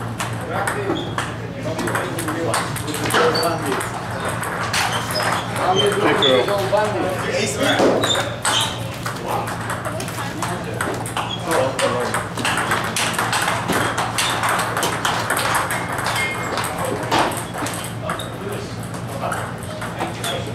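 Ping-pong balls click sharply against paddles and tables in quick rallies.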